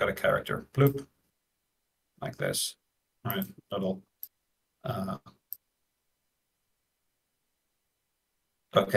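A man talks casually over an online call, in short bursts with pauses.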